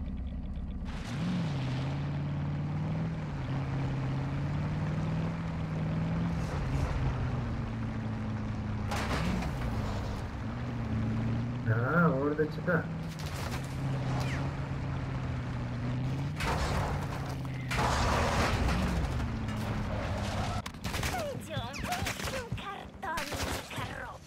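A truck engine roars and revs up and down.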